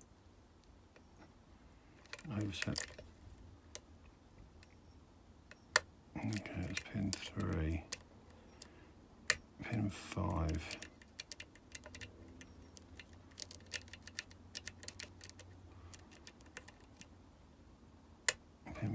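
Small metal picks click and scrape inside a lock.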